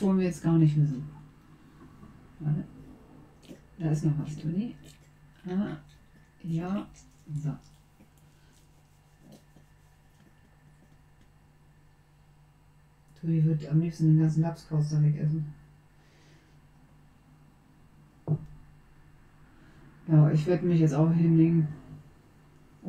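A young woman talks calmly into a close microphone, in bursts with pauses.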